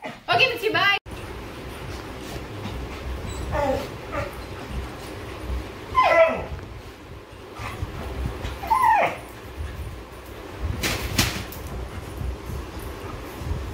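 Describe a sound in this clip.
Dogs scuffle and thump on soft cushions.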